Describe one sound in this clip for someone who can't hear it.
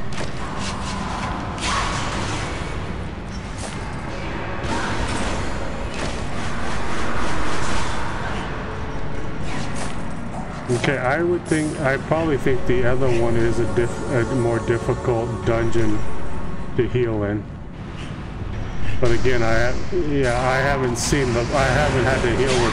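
Game spell effects and weapon hits clash and whoosh.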